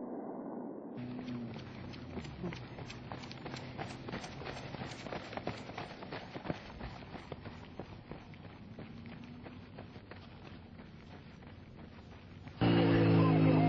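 Runners' feet patter and crunch on dry sandy ground.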